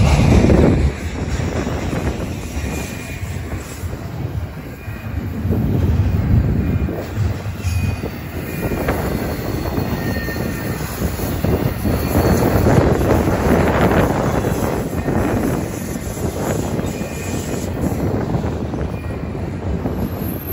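A double-stack container freight train rumbles and clatters past on the rails.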